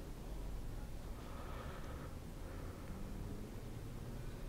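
A man yawns loudly.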